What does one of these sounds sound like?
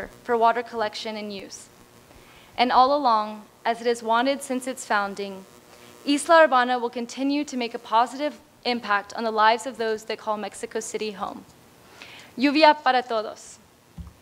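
A young woman speaks calmly through a microphone in a large hall.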